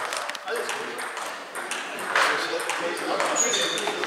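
A table tennis ball clicks on bats and a table.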